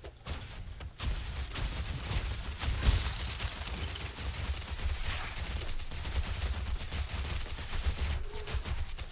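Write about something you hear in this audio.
Weapon blows strike again and again in a fast fight.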